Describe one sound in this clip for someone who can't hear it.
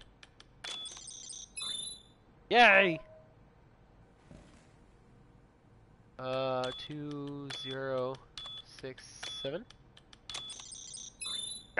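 Electronic keypad buttons beep as a code is entered.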